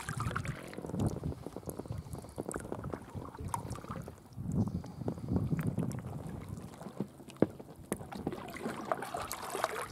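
A kayak paddle splashes and drips in calm water.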